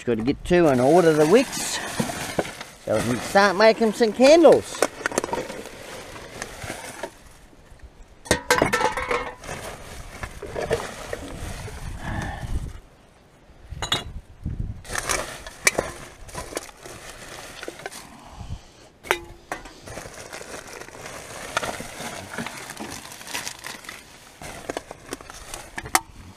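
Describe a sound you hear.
Plastic bags and rubbish rustle as they are shifted about.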